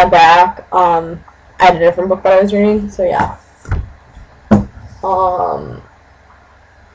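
A young woman speaks close to a laptop microphone, casually and with animation.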